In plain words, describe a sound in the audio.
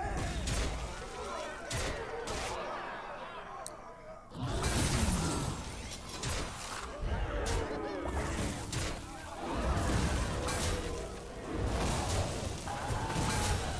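Game creatures clash with heavy magical impacts and bursts.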